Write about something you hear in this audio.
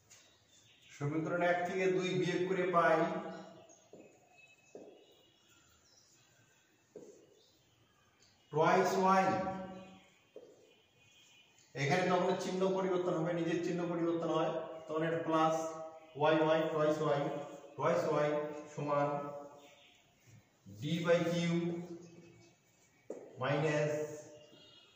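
A middle-aged man speaks calmly and explains, close by.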